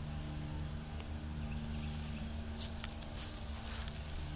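An opossum rustles through grass.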